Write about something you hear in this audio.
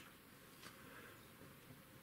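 A brush swishes through paint on a palette.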